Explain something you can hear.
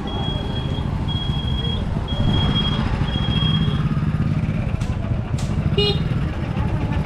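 A motorbike rides past close by.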